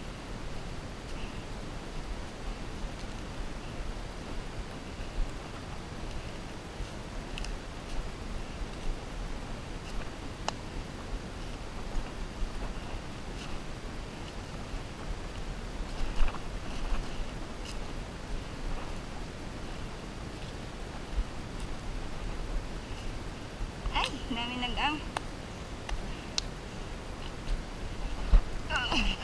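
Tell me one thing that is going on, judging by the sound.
Twigs snap underfoot.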